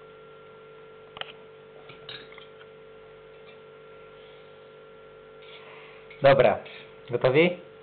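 Cutlery clinks against plates.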